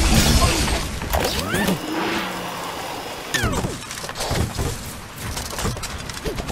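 Cartoonish game sound effects chime and whoosh.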